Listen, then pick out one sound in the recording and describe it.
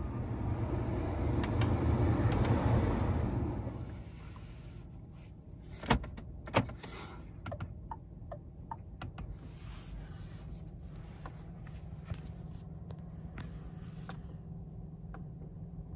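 A finger presses buttons with soft clicks.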